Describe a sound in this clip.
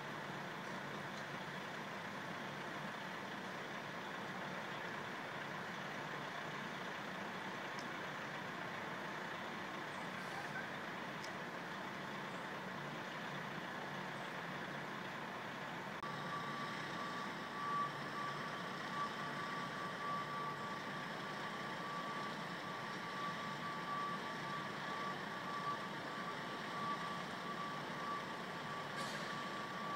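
City traffic hums steadily in the distance, outdoors.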